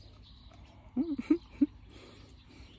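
A chicken clucks loudly nearby.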